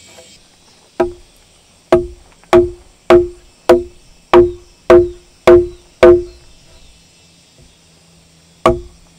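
A mallet strikes a chisel into wood with sharp, regular knocks.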